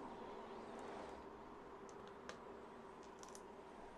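A small plastic piece taps on a tabletop.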